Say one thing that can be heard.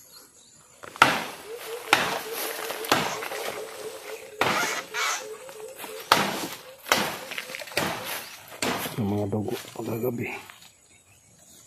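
Leaves and bamboo stalks rustle and crack as someone pushes through dense brush.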